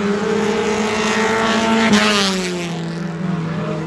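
A race car roars past close by.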